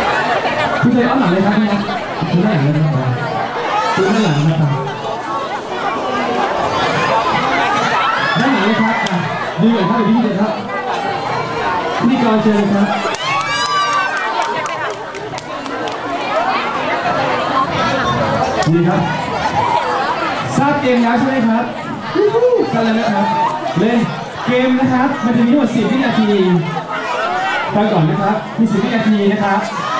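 A crowd chatters all around in a large echoing hall.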